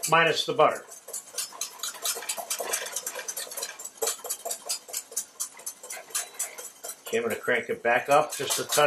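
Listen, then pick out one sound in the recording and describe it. A wire whisk beats rapidly against a metal pot.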